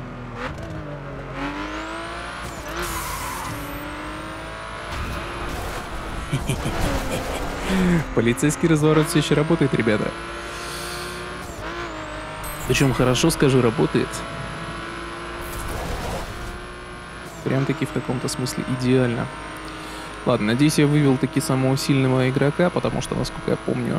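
A racing car engine roars and revs at high speed.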